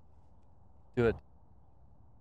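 A putter taps a golf ball.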